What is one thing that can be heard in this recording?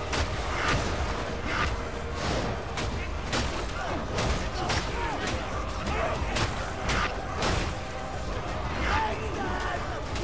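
Monstrous creatures growl and snarl.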